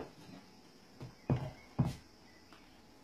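A wooden frame is set down on a padded seat with soft knocks.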